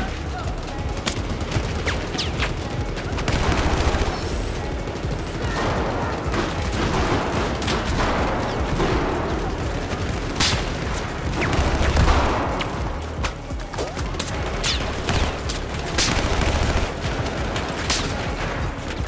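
Rifles fire in bursts, with sharp cracks echoing indoors.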